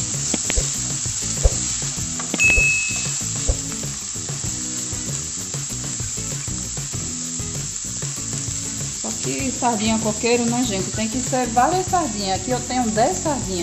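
Onions sizzle softly in a hot pan.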